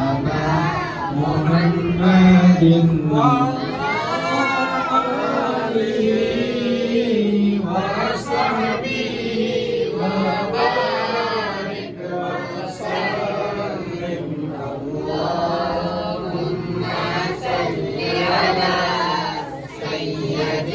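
A group of men chant together.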